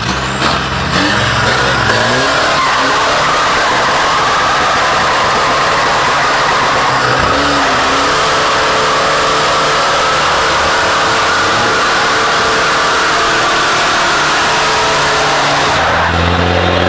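Tyres screech and squeal on the track.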